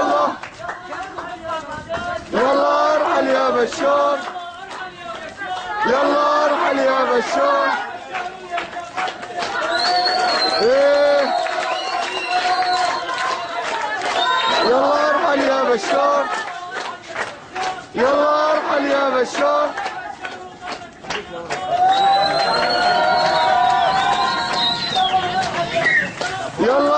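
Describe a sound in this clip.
A crowd of men chants loudly in rhythm nearby.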